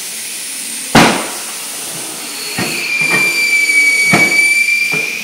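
A wheel thumps and knocks against metal.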